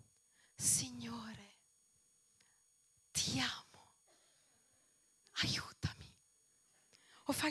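A woman sings emotionally into a microphone in short phrases with pauses.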